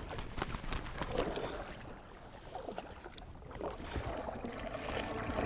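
Water ripples and laps gently.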